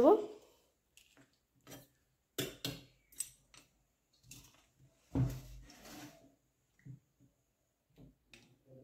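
A metal spoon clinks and scrapes against a metal bowl.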